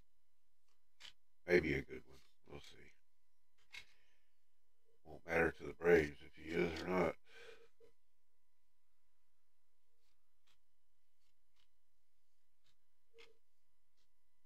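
Trading cards rustle and slide as they are shuffled by hand.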